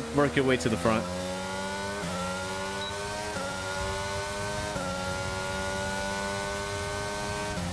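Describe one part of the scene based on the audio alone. A racing car engine whines and climbs through the gears.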